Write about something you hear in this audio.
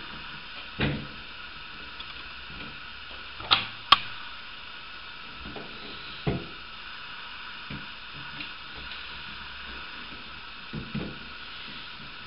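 Plastic parts click and knock inside a toilet cistern.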